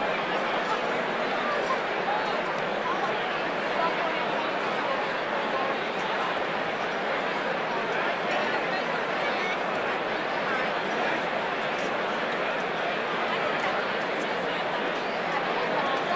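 A large crowd chatters loudly, filling a big echoing hall.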